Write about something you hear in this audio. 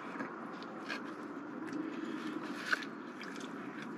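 A man chews food noisily close by.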